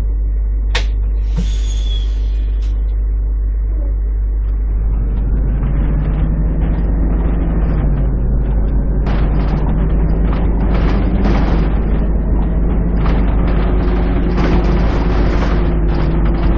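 A bus engine idles, then revs and drones steadily as the bus pulls away.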